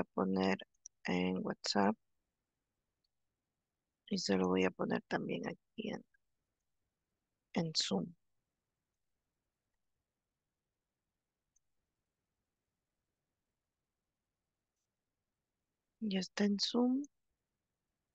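A young woman speaks calmly in short phrases over an online call.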